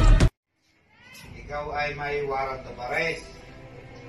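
A man reads out a statement nearby in a calm voice.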